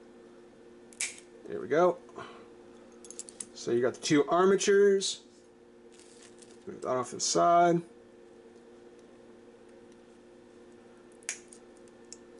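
Hand cutters snip through plastic with sharp clicks.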